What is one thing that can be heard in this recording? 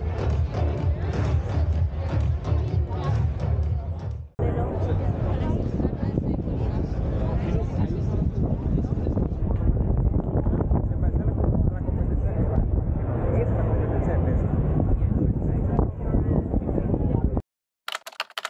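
A crowd chatters outdoors on a busy street.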